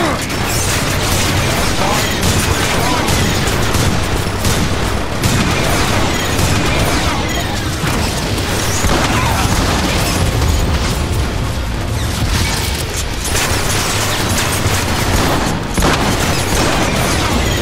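Explosions boom and crackle.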